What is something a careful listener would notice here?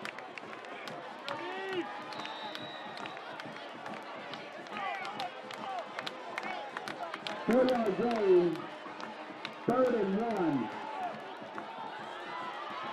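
A crowd of spectators chatters and calls out across an outdoor stadium.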